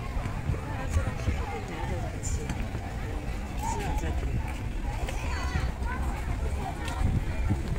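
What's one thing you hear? A crowd chatters faintly in the distance.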